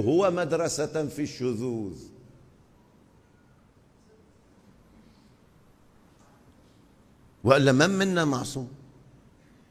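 An elderly man speaks emphatically into microphones, pausing between phrases.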